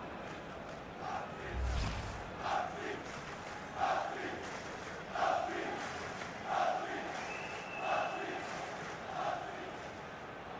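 A large stadium crowd chants in a steady rhythm.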